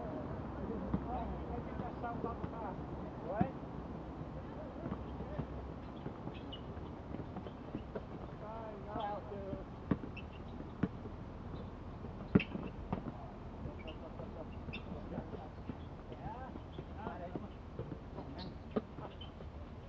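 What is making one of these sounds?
A basketball bounces on an outdoor court.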